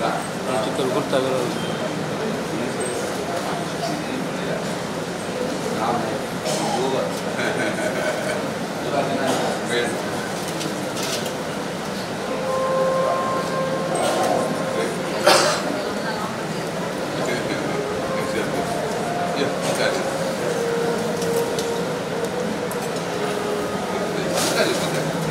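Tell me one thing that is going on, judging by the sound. A group of men chant together.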